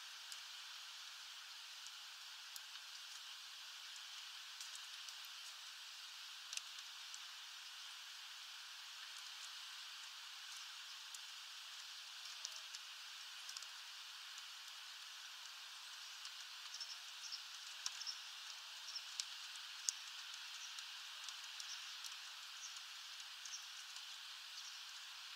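Light rain patters steadily outdoors.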